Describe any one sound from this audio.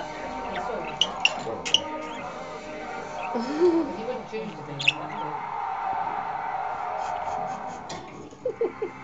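A budgie pecks at a mineral block with sharp taps.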